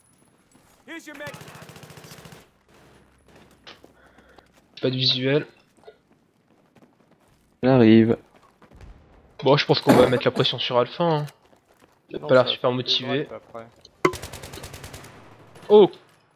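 A rifle fires in quick bursts.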